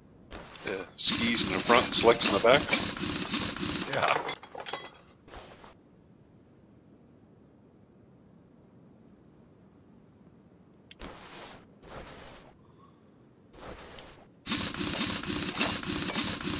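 A pneumatic impact wrench whirs and rattles loudly as it spins off wheel nuts.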